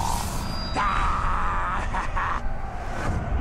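A creature lets out a loud, harsh roar.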